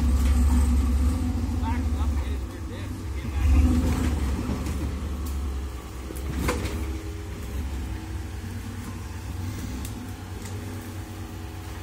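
Tyres scrape and crunch over rocks and dirt.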